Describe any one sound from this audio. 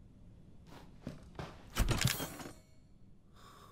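A heavy crate lid creaks and thuds open.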